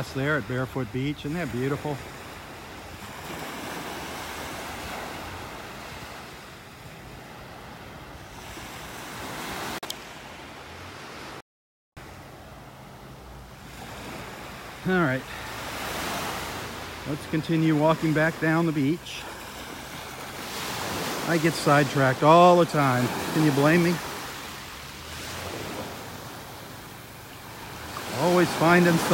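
An elderly man talks calmly, close by.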